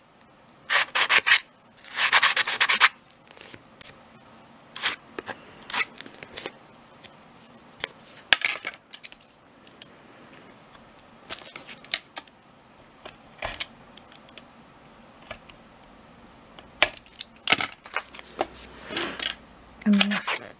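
A blade scores paper with short scratches.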